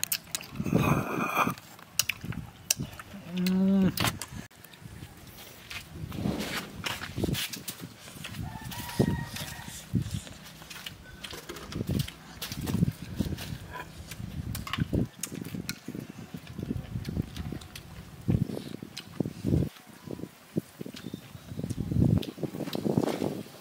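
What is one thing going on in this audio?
A young man slurps and chews food up close.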